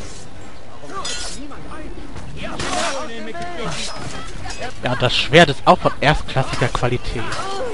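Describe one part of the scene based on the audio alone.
Swords clash and clang.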